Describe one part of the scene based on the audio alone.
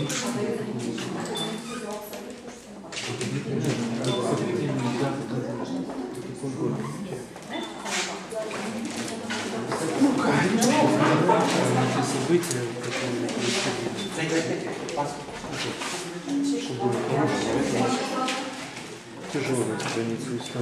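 Several adults talk and murmur in a room with some echo.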